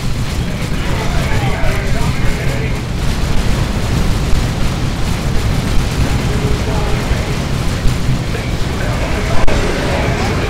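Explosions boom heavily.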